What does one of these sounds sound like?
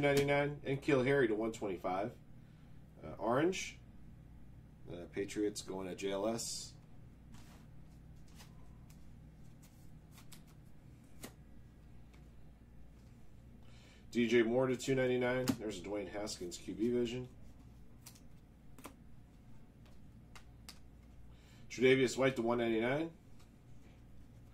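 Trading cards rustle and flick between fingers.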